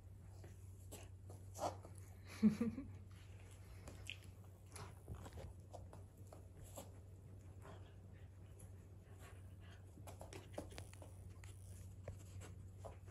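A dog sniffs and snuffles close by.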